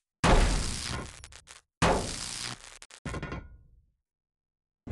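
A gun fires loud shots that echo and fade.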